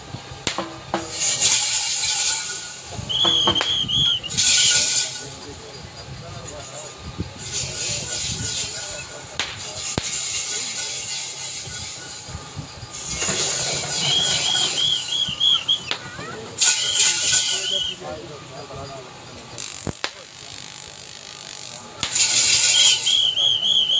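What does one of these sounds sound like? A crowd cheers and shouts in loud bursts outdoors.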